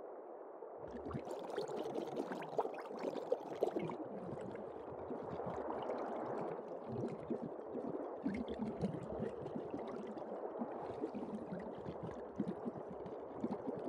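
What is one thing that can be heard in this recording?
Water sloshes and bubbles.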